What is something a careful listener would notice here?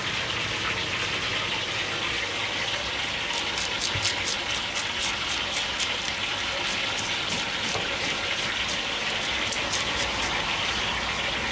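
A plastic scraper rasps scales off a fish in quick strokes.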